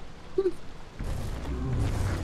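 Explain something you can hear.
A magic spell bursts with a rushing whoosh.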